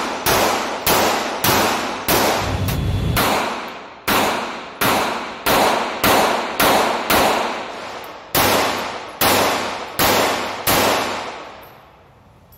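Pistol shots fire in quick succession, echoing in an indoor range.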